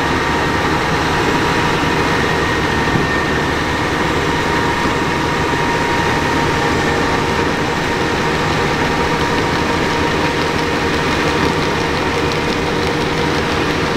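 A spreader flings manure across the ground with a steady whirring.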